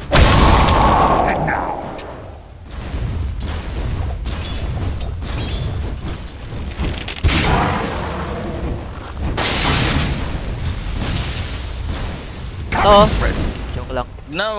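Magic blasts whoosh and crackle amid fighting sounds from a game.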